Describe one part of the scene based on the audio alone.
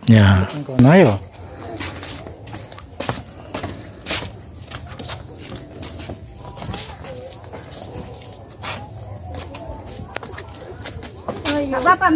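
A young child calls out in a high voice.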